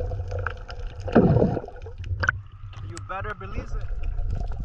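Water sloshes at the surface.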